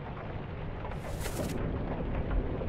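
A book page turns with a papery swish.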